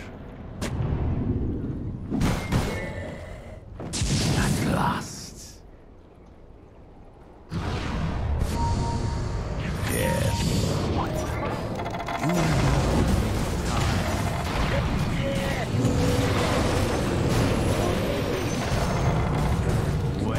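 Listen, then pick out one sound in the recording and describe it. Video game clashes and spell effects ring out.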